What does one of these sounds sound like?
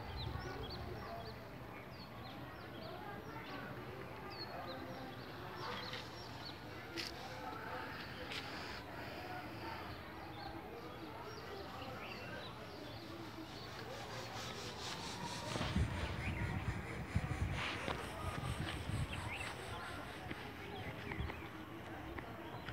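Small birds chirp outdoors.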